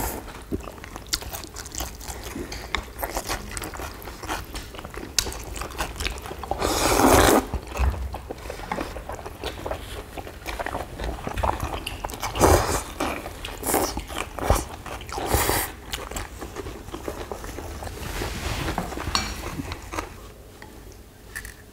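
Chopsticks click against bowls.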